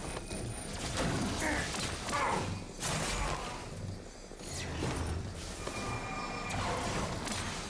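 Energy beams whoosh and roar.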